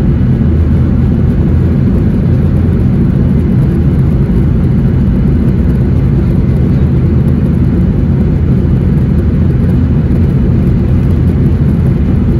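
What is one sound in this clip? Aircraft wheels rumble on a runway.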